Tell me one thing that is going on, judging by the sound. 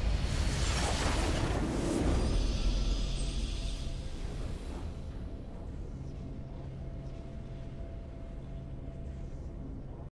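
A triumphant game fanfare swells and then fades.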